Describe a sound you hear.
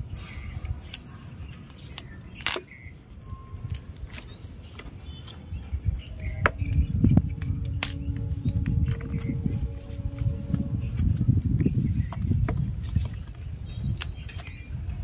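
Hands crumble and rustle dry soil and roots close by.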